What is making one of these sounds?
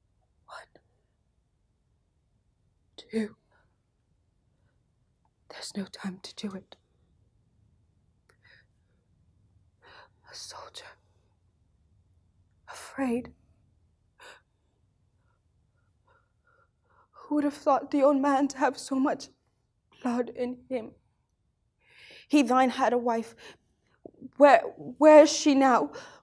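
A young woman speaks close up, slowly and haltingly with emotion, her voice growing fuller and more animated later.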